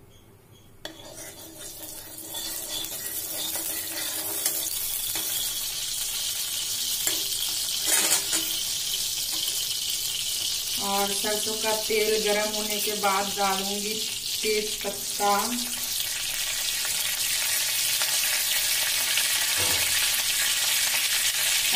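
Hot oil sizzles steadily in a pan, growing louder.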